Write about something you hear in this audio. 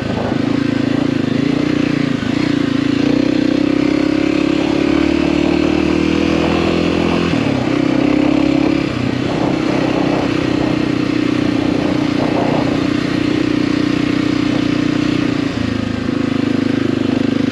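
Tyres crunch over a rough dirt track.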